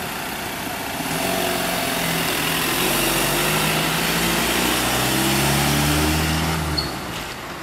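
A van's engine hums as the van drives past.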